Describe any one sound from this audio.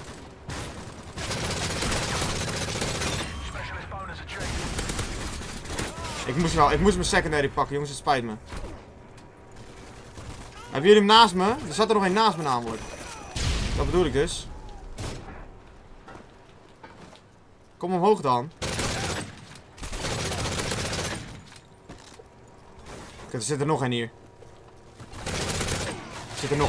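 Gunfire from a game rattles in bursts.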